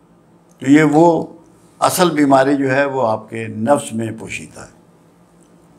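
An elderly man speaks calmly into a close microphone.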